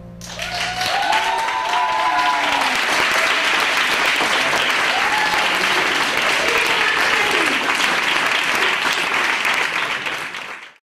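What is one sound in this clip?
A crowd cheers and whoops loudly indoors.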